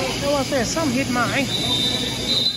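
A woman shouts from the sidelines in a large echoing hall.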